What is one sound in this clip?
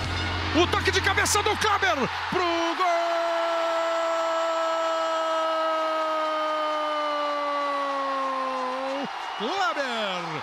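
A large stadium crowd roars and cheers.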